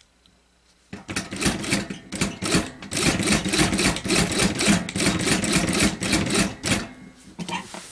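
A sewing machine runs fast with a rapid rattling stitch.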